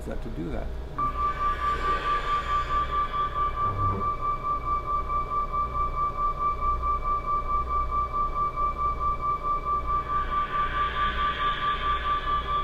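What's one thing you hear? A steady, rapidly pulsing beep tone plays.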